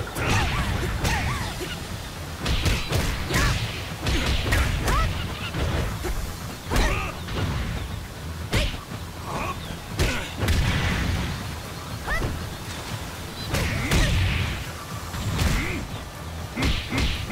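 Heavy punches and kicks land with sharp thuds and smacks.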